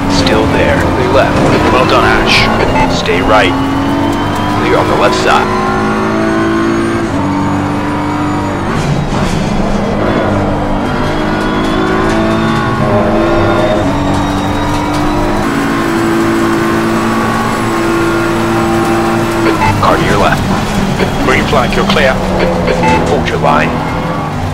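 A racing car engine roars loudly, rising and dropping in pitch as the gears change.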